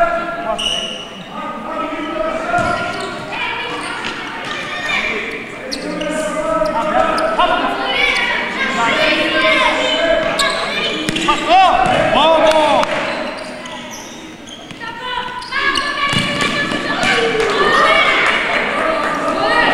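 Children and adults shout and call out in an echoing indoor hall.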